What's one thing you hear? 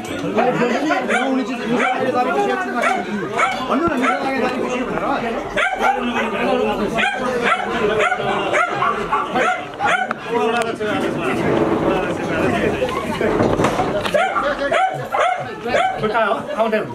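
Several men talk over one another in a small crowd.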